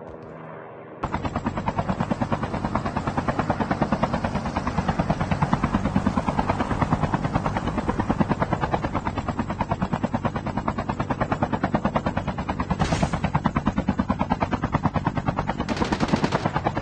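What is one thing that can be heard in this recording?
Helicopter rotor blades chop loudly and steadily in flight.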